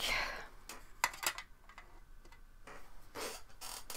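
A paintbrush is set down on a plastic palette with a light click.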